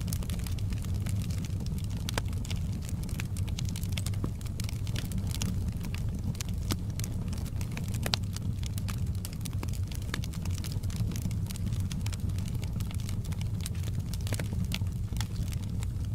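Flames roar with a low steady rumble.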